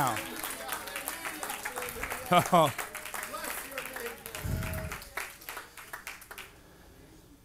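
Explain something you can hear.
A crowd of people cheer and shout.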